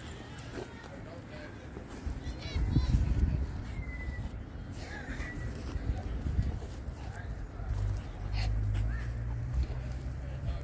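A dog rolls and wriggles on its back in rustling grass.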